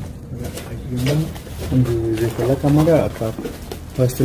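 A young man speaks nearby in a low voice.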